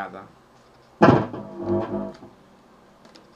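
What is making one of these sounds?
Guitar strings are strummed and ring out.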